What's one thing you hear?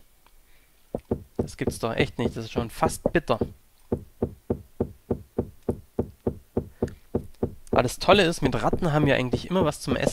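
A pickaxe chips at stone with quick, repeated knocks.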